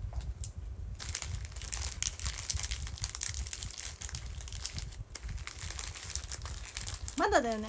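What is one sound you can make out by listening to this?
A plastic wrapper crinkles close by.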